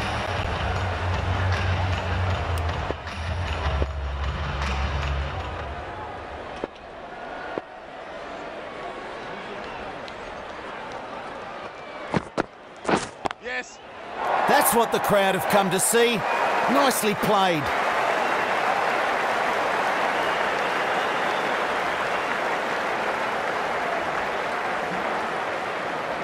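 A large stadium crowd murmurs and cheers loudly.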